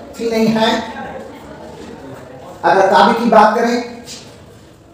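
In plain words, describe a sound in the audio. An elderly man speaks calmly and clearly, as if teaching.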